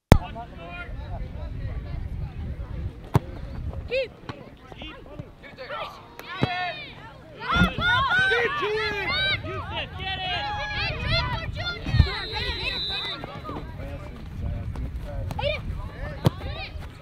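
Children and adults shout and cheer across an open field.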